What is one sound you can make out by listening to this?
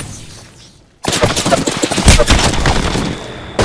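Bullets whizz and crack nearby in a gunfight.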